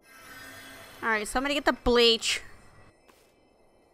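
A magic spell shimmers and chimes.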